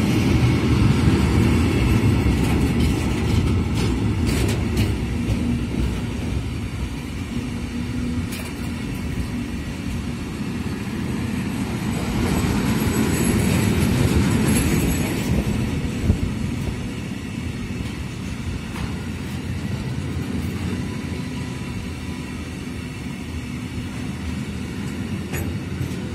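A long freight train rumbles past close by, its wheels clattering rhythmically over the rail joints.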